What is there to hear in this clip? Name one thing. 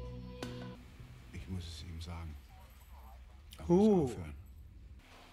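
An elderly man speaks slowly in a low voice.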